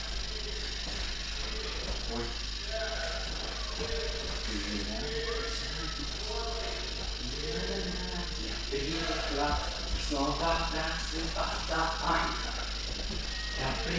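Bare feet shuffle and scuff on a mat.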